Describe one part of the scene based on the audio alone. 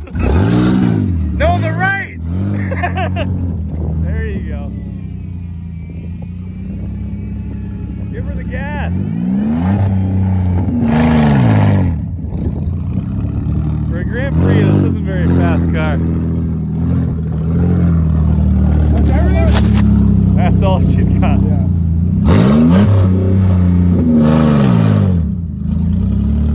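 Tyres spin and slosh through thick mud.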